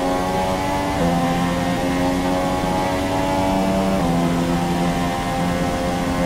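A racing car engine whines loudly at high revs, dropping in pitch briefly with each gear change.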